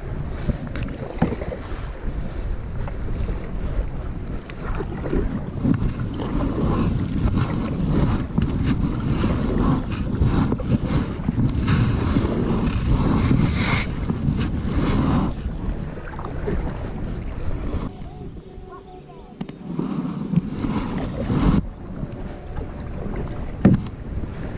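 A paddle splashes and dips rhythmically into calm water.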